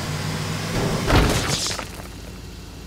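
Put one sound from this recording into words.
A truck crashes and tumbles with a loud clatter.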